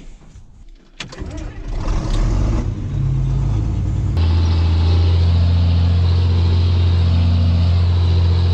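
A tractor engine rumbles loudly and steadily.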